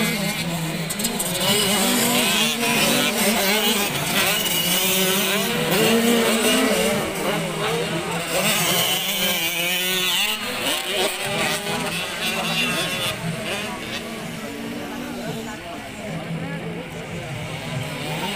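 Dirt bike engines rev and whine loudly, rising and falling in pitch.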